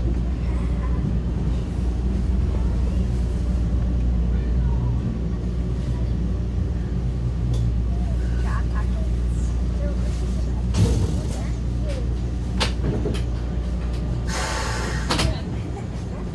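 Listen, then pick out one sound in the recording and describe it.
A subway train rumbles steadily through a station, then stops.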